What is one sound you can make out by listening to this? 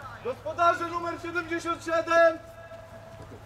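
A man shouts loudly across an open field outdoors.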